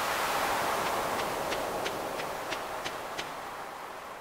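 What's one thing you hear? Soft footsteps tap on sand.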